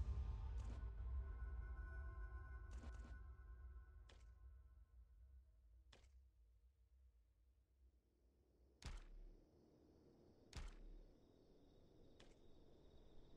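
Short menu clicks sound as buttons are pressed.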